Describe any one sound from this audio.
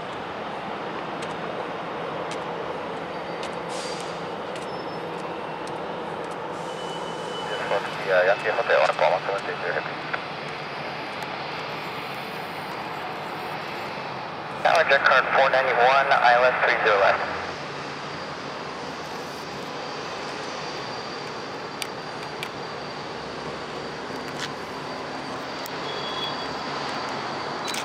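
A jet airliner's engines hum steadily as it taxis nearby.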